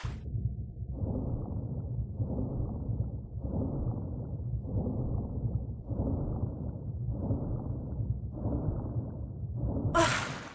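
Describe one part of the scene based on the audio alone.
Swimming strokes whoosh underwater in a slow, steady rhythm.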